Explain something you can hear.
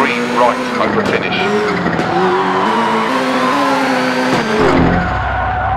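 Car tyres screech in a slide.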